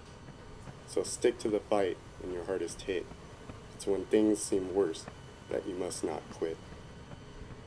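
A man talks on a phone, a little way off, in an echoing hall.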